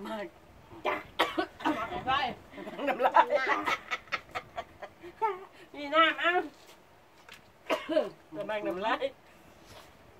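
A man laughs nearby.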